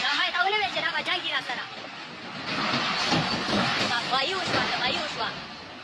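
Heavy metal crashes and scrapes.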